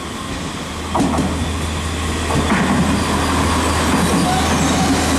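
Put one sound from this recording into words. An electric train rumbles past close by, wheels clattering over the rail joints.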